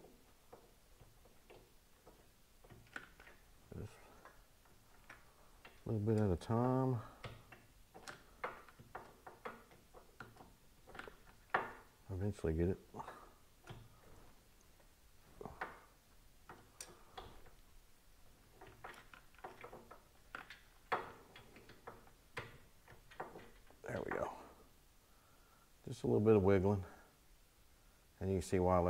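Metal engine parts click and tap softly as they are handled.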